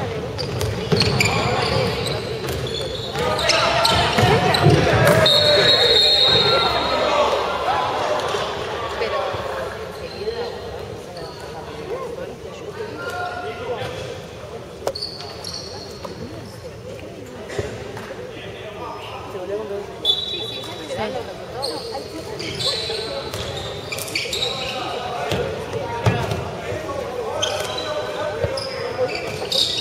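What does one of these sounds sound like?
Sneakers squeak sharply on a hard court, in a large echoing hall.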